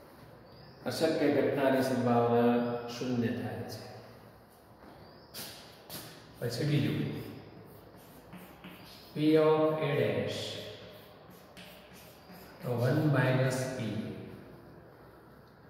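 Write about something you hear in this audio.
A middle-aged man speaks calmly, close by.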